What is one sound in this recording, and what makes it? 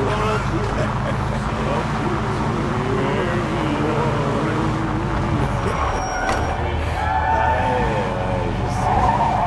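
Tyres roll over a wet cobbled road.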